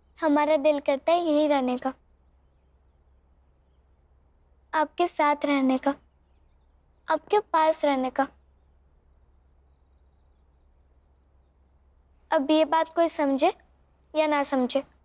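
A young girl speaks with animation nearby.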